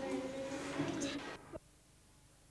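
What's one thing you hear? A young woman speaks aloud, close by.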